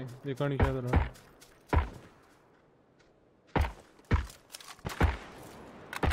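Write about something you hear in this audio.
A gun fires loud, sharp shots.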